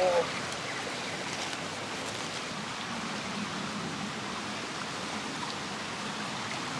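A river flows steadily nearby.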